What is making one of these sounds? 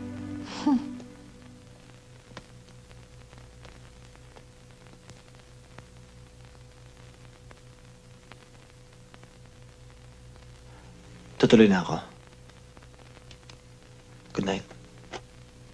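A young man speaks in short bursts nearby.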